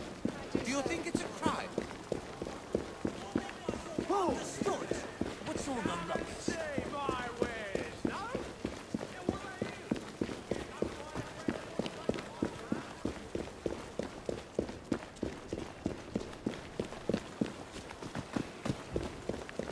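Footsteps tread steadily on cobblestones.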